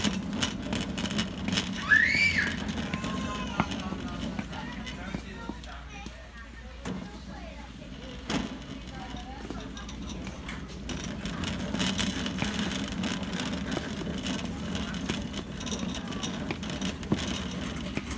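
A shopping cart rattles as it rolls along.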